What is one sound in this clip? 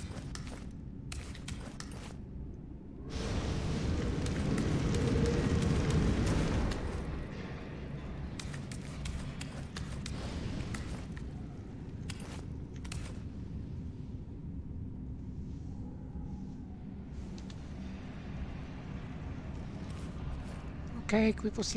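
Footsteps thud on stone as a figure walks through a tunnel.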